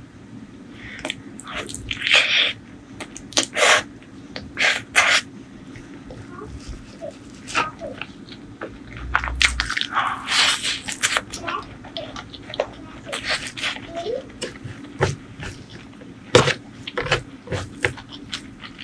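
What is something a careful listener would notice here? A woman chews and smacks crunchy food loudly close to a microphone.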